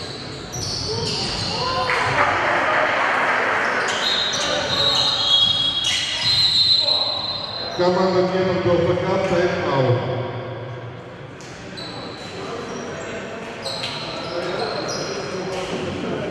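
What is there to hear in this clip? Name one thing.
Spectators cheer and shout from the stands.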